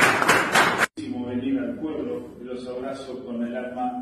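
A group of people sing together nearby.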